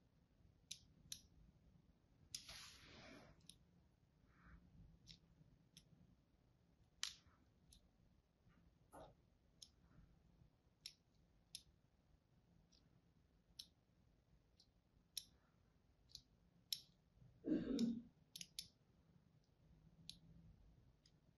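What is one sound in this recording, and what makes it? A blade scratches and scores the surface of a soap bar with crisp little clicks.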